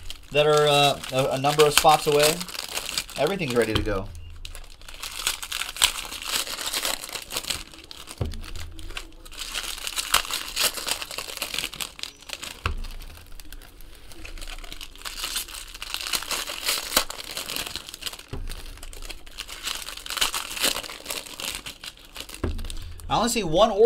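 Foil card wrappers crinkle and tear as they are opened.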